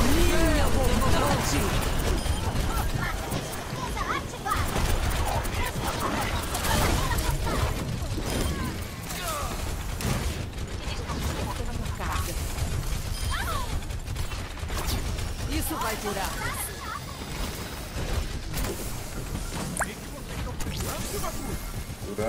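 Energy weapons fire and whoosh in quick bursts.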